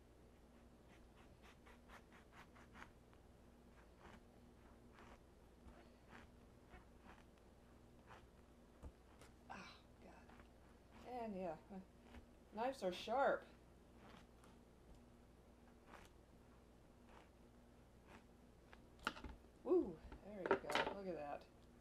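A knife cuts through an apple and taps on a cutting board.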